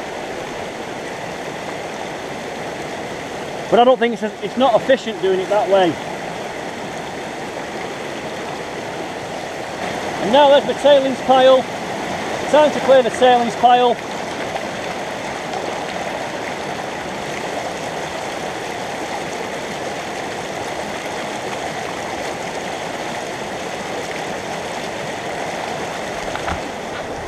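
A shallow stream rushes and gurgles steadily over rocks.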